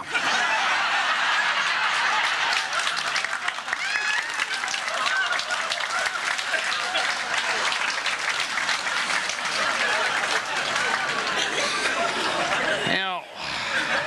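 An audience applauds and cheers loudly in a hall.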